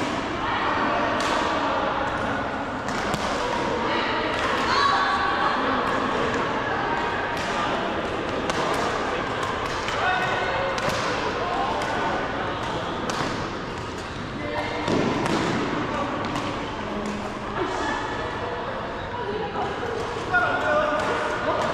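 Many players' voices call and chatter, echoing in a large hall.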